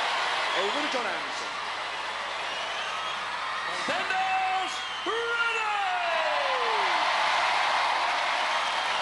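A large crowd cheers and murmurs in a big echoing arena.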